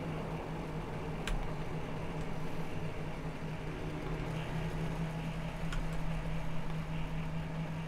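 A small motorbike engine hums steadily.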